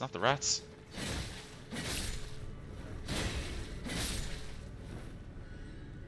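Sword blows clash in a game fight.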